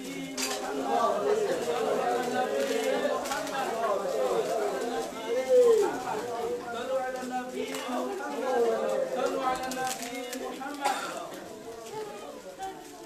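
A man chants loudly with animation in an echoing room.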